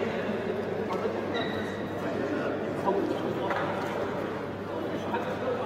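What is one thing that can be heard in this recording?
A crowd murmurs steadily in a large echoing arena.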